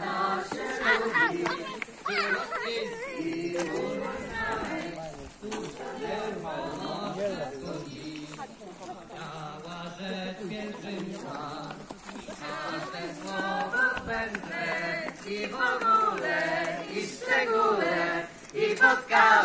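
A crowd of men and women sing together outdoors.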